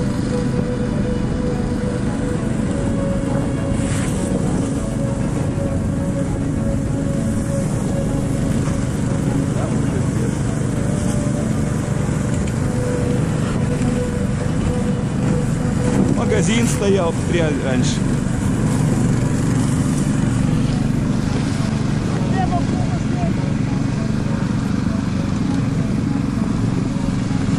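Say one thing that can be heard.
A snowmobile engine drones steadily close by.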